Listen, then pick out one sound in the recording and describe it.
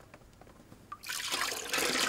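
Water pours and splashes into a tub.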